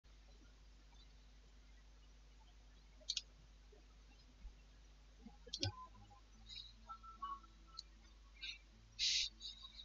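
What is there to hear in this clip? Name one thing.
A guitar is strummed softly.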